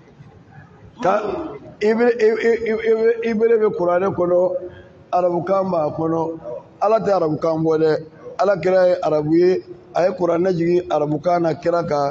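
A man preaches loudly and with animation through a microphone in an echoing hall.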